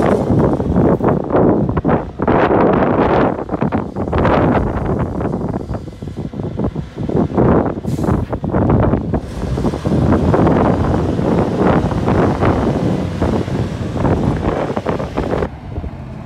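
Heavy tyres crunch over gravel.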